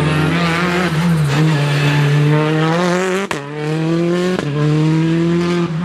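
A turbocharged four-cylinder rally car accelerates at full throttle, snapping through upshifts.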